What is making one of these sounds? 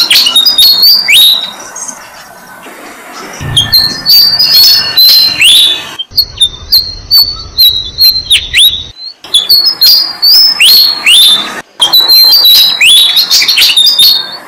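Baby birds chirp shrilly and insistently, close by.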